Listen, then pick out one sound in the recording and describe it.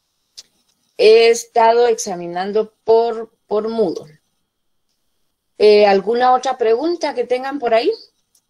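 A middle-aged woman speaks calmly over an online call.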